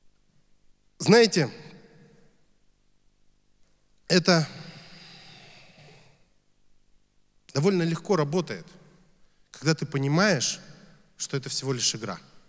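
A young man speaks into a microphone in short phrases, heard through loudspeakers in a reverberant room.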